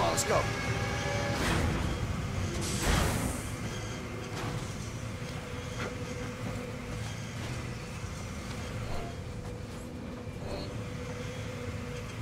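A figure clambers and scrapes along a metal pillar.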